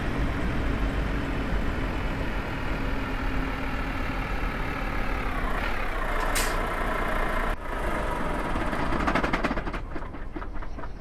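A truck engine drones steadily, then drops in pitch and quiets.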